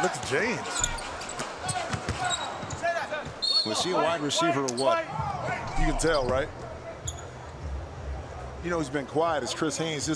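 A crowd murmurs in a large arena.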